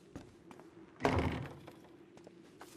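A heavy wooden door swings open with a loud creak.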